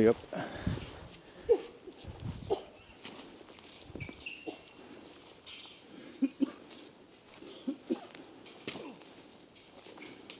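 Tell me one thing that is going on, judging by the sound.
Footsteps crunch on dry leaves and twigs along a path.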